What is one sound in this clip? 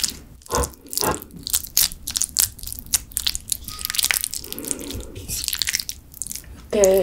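Thick sticky sauce squelches and clicks as chopsticks stir it up close.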